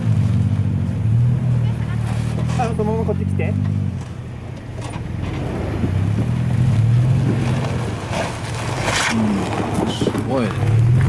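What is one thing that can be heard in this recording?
Tyres grind and crunch over rough rock.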